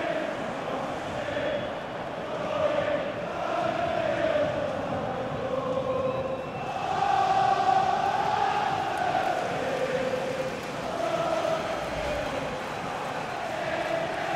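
A large stadium crowd sings and chants loudly.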